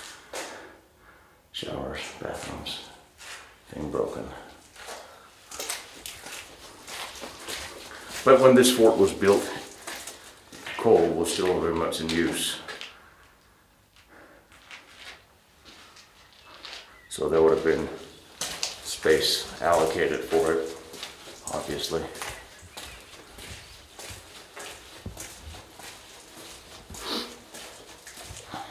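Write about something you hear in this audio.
Footsteps crunch on loose debris.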